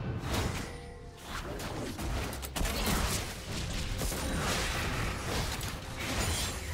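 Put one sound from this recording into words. Video game spell effects whoosh and crackle in quick bursts.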